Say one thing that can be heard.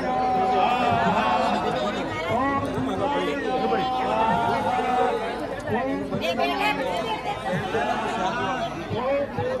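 A large crowd of men and women chatters all around, outdoors.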